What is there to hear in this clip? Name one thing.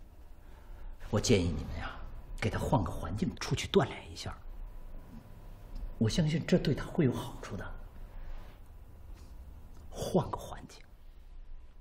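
An elderly man speaks calmly and persuasively nearby.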